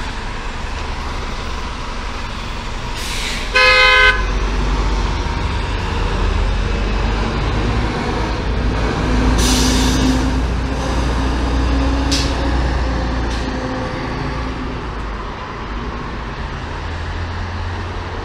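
Traffic hums steadily on a city street.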